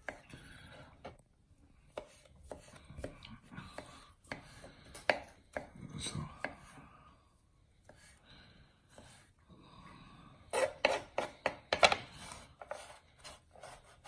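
A knife taps and chops on a wooden board.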